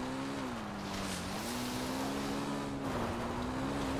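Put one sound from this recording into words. Motorbike wheels splash through water.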